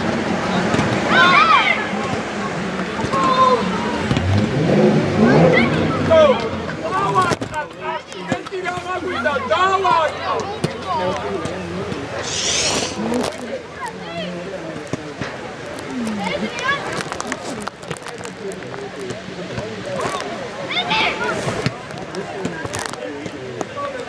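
Children shout and call out across an open outdoor pitch.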